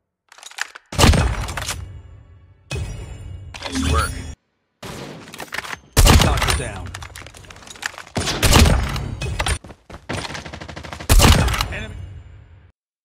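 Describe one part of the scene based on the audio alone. A sniper rifle fires with a loud, booming shot that echoes away.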